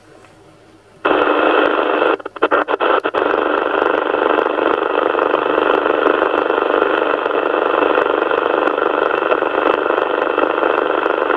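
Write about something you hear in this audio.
A radio receiver hisses with loud, steady static.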